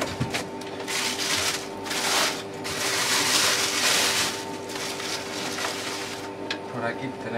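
A plastic bag crinkles and rustles as it is unwrapped.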